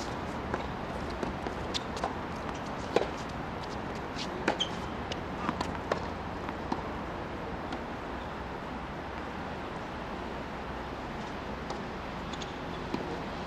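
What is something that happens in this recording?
Tennis balls are struck with rackets, in sharp pops outdoors.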